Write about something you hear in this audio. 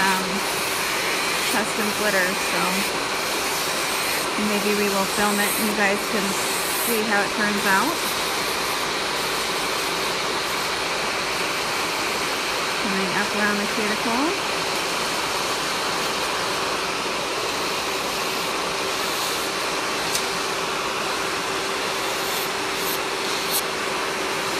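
An electric nail drill whirs steadily.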